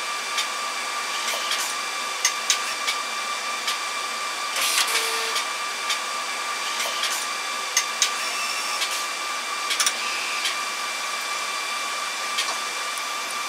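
Machine parts click and clack as they move.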